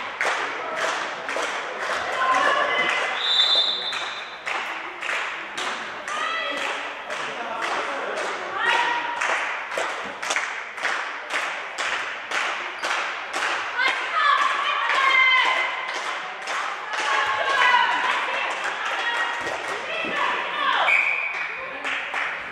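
Young women shout and call out across an echoing hall.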